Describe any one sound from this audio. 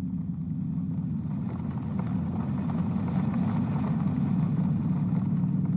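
A bus engine rumbles as the bus pulls up close by.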